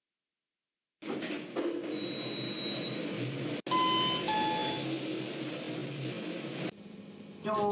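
An elevator hums steadily as the car arrives.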